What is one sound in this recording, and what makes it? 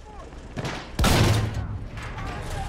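A heavy gun fires with a loud boom.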